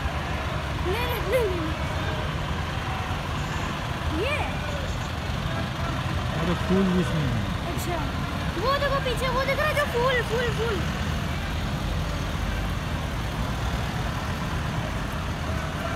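Trucks and cars drive past on a road, engines rumbling steadily.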